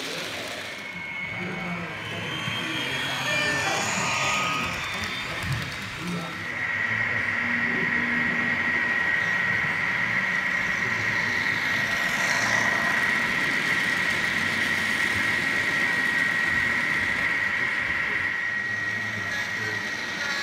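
A model train rumbles and clatters along the track.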